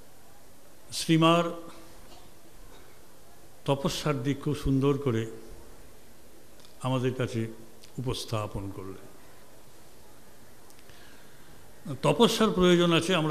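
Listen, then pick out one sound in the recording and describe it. An elderly man speaks slowly and earnestly into a microphone, with pauses between phrases.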